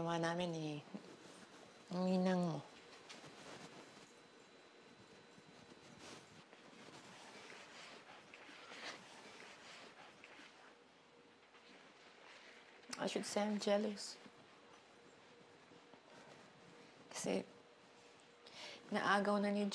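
A middle-aged woman speaks tearfully in short, strained bursts nearby.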